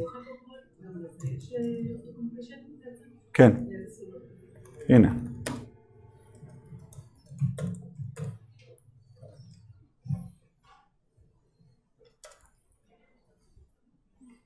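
A man types on a laptop keyboard.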